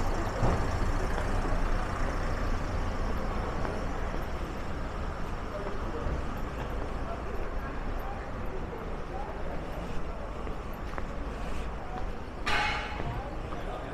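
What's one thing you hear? A van's engine rumbles slowly along a cobbled street.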